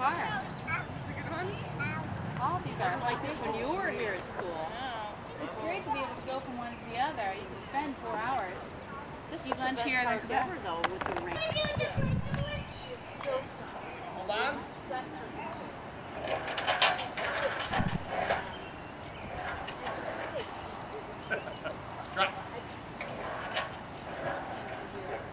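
Young children call out and chatter.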